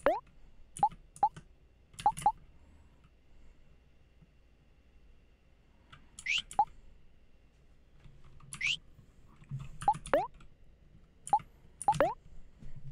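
Short electronic menu blips sound as a cursor moves between options.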